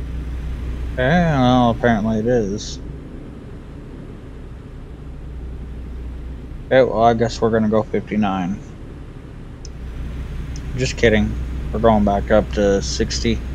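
A young man talks casually into a microphone, close by.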